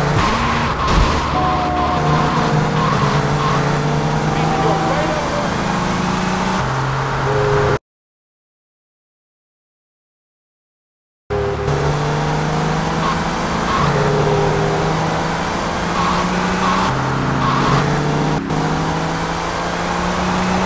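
A car engine hums steadily, rising and falling in pitch as the car drives.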